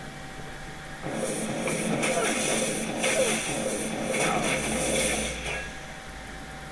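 Game combat sounds of spells and blows burst and clatter.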